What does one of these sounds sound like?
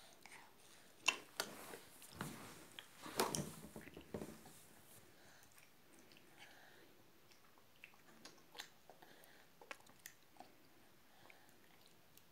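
A baby smacks its lips while eating.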